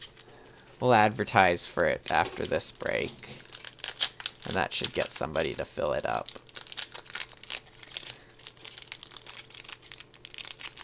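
A foil wrapper crinkles and rustles close by.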